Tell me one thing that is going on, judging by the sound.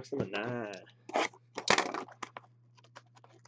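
Scissors snip through plastic wrap.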